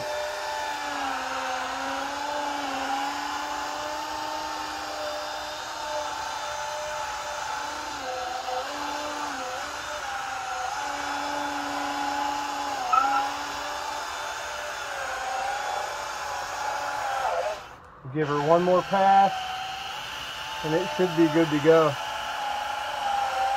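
A handheld electric polisher whines steadily, its pitch dipping now and then.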